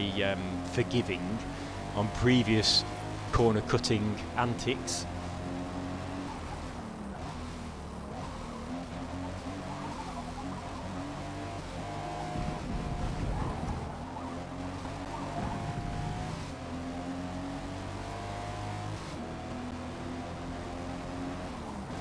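A car engine roars steadily, rising and falling in pitch as the car speeds up and slows down.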